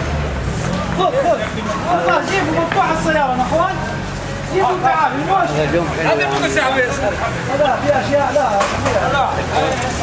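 Men talk loudly and with animation nearby.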